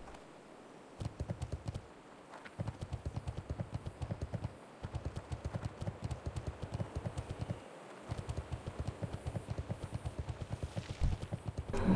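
Hooves gallop in a quick, steady rhythm over hard ground.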